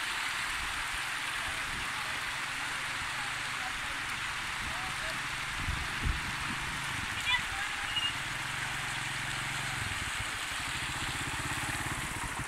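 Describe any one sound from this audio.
A motorcycle engine hums as it rides closer.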